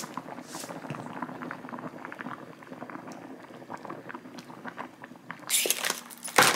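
Porridge bubbles and simmers in a pan.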